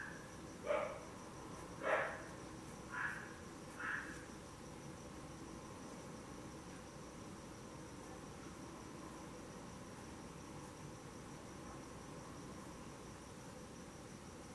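A paintbrush softly strokes across canvas.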